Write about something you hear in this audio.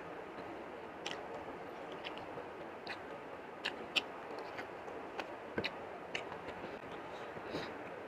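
A man chews food with wet smacking sounds, close up.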